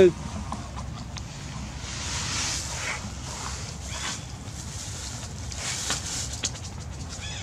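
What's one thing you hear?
A monkey rustles and crinkles a plastic bag.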